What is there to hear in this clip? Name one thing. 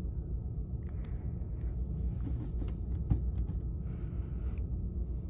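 A hand brushes and taps close by.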